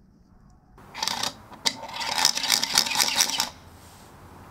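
A wooden spinning top whirs as it spins.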